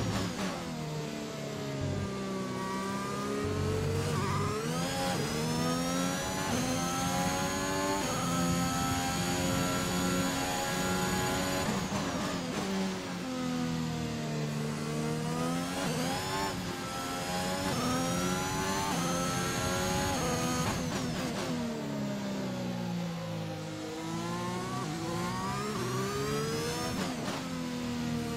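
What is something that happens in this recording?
A racing car engine revs up and down through the gears, whining high at speed.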